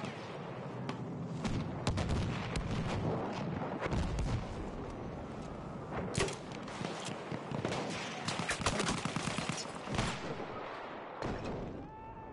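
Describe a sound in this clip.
Gunshots crack in quick bursts over a loud rumbling battle.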